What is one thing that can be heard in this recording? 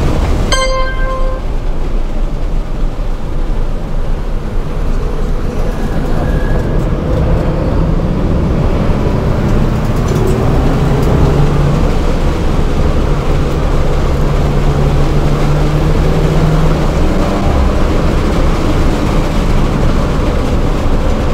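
Tyres roar on asphalt from inside a racing car.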